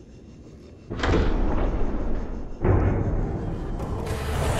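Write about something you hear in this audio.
A heavy metal clamp locks onto a craft with a loud clunk.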